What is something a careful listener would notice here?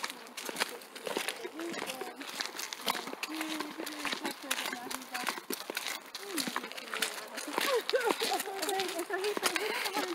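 A horse's hooves clop slowly on a hard path.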